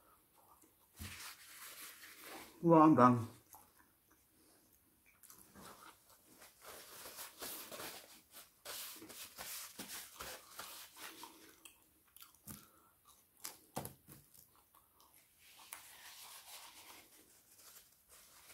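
Paper wrappers crinkle and rustle close by.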